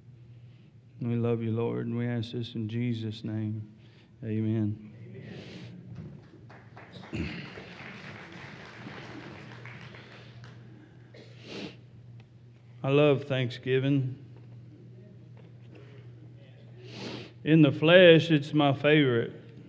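A middle-aged man speaks slowly and earnestly through a microphone in a large echoing hall.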